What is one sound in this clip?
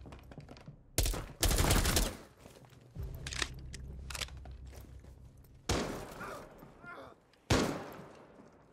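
Gunshots ring out in short, loud bursts.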